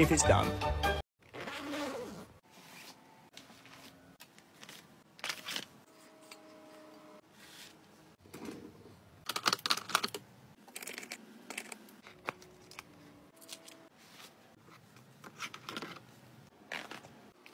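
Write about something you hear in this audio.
A fabric bag rustles as it is handled.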